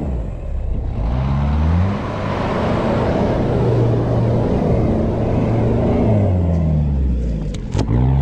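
Tyres crunch and spin on loose dirt.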